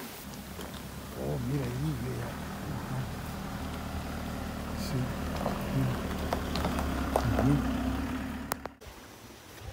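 A van engine hums as the van drives slowly up a gravel road.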